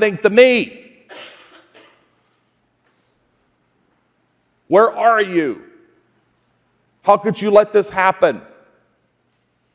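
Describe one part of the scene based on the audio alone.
A man speaks in short bursts through a microphone in a large echoing hall.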